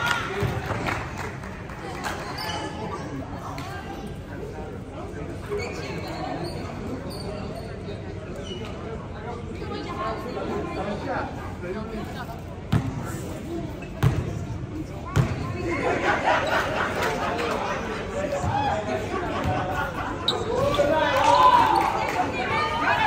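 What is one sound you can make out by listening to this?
Teenage boys and men talk and call out around an echoing gym.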